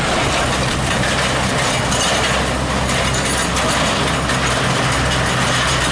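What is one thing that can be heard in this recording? A truck rolls away with engine rumbling.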